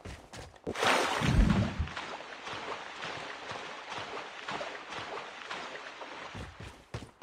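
Water splashes steadily as a swimmer paddles.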